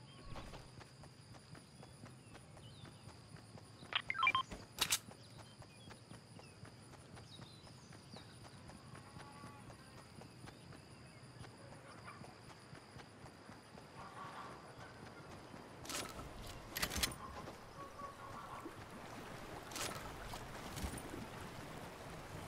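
Footsteps patter on grass and pavement.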